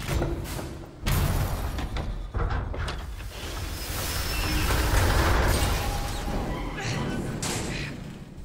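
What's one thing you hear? A loud metallic crash and rumble rolls through.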